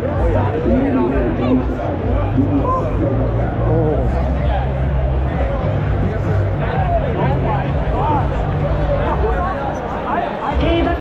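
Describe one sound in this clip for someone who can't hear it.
A marching band plays brass and drums nearby.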